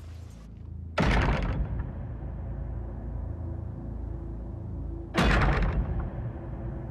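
A wooden pole thuds heavily against a metal gate.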